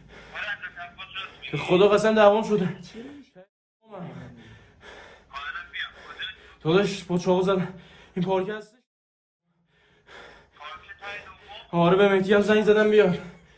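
Young men laugh nearby.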